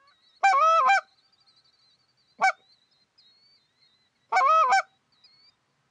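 A hunter blows loud, honking notes on a game call.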